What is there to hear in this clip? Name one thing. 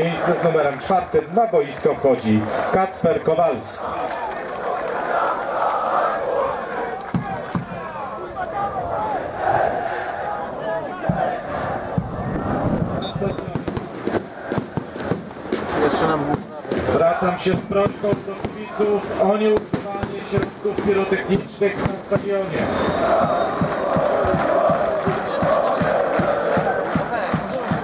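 A large stadium crowd chants and sings loudly outdoors.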